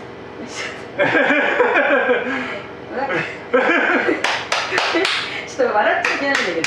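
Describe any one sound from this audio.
An older man laughs heartily close by.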